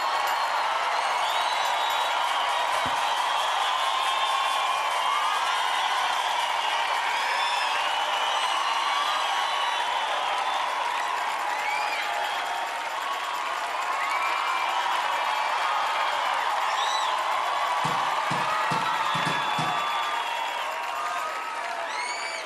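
A large crowd claps.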